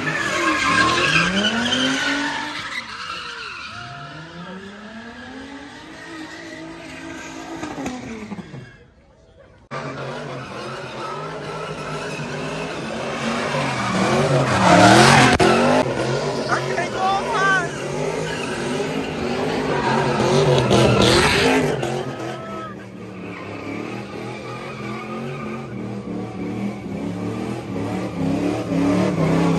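A car engine revs loudly, rising and falling.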